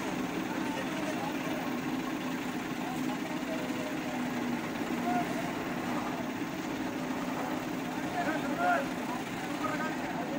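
A crane's diesel engine idles with a steady low rumble outdoors.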